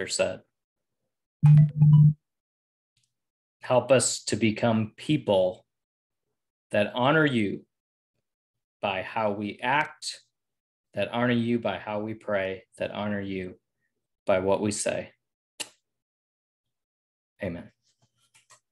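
A man talks calmly and closely into a microphone, with pauses.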